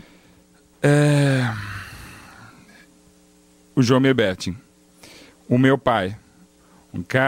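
A man speaks into a microphone close up, in bursts with pauses.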